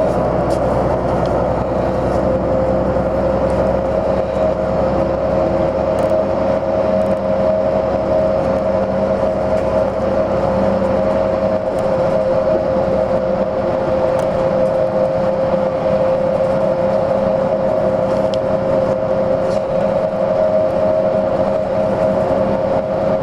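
Wheels rumble low and steadily on the road.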